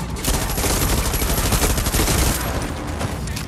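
Gunfire rattles loudly in rapid bursts.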